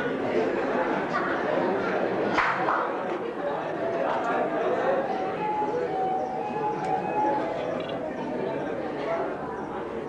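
A man sings loudly in an echoing hall.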